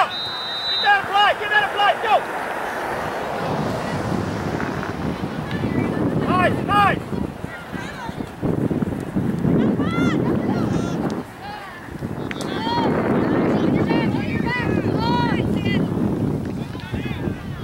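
Young women shout loudly to each other across an open field.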